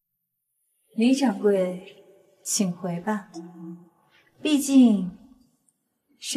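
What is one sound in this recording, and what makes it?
A young woman speaks firmly.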